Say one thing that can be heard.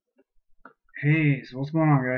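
A man speaks close to a microphone in a low, calm voice.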